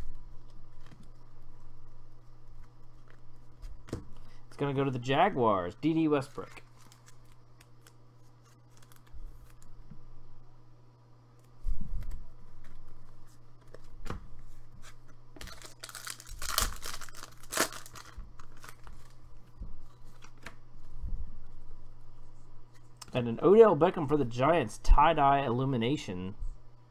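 Trading cards rustle and slide against each other as they are handled.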